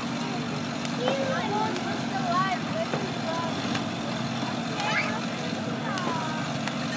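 Children shout and chatter nearby outdoors.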